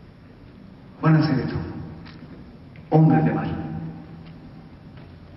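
A man calls out loudly through a microphone, echoing in a large hall.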